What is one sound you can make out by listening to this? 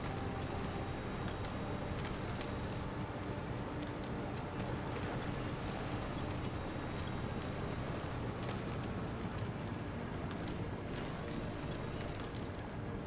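A truck engine rumbles steadily as it drives over rough ground.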